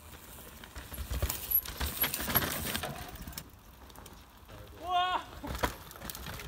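A mountain bike rattles as it bumps downhill.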